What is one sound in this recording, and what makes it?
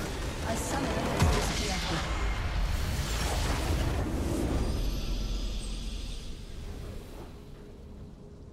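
A loud game battle of blasts and crashes rumbles and roars, then fades.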